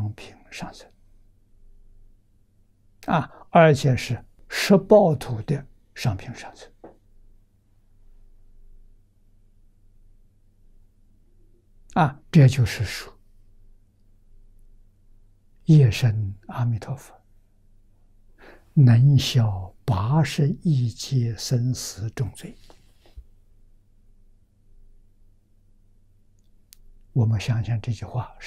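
An elderly man speaks calmly into a close microphone, with long pauses.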